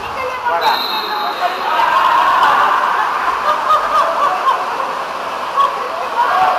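Water splashes as swimmers thrash about, echoing in a large hall.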